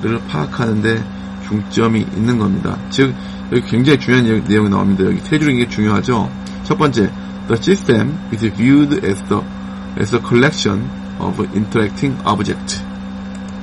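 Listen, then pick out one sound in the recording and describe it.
A man lectures calmly into a microphone.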